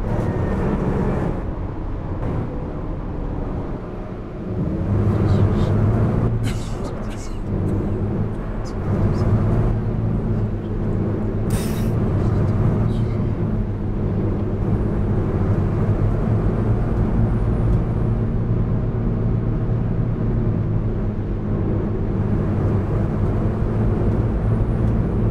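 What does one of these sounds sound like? A bus engine hums steadily and grows louder as the bus speeds up.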